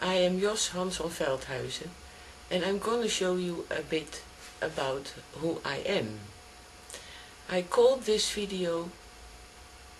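A middle-aged woman talks calmly and close to the microphone.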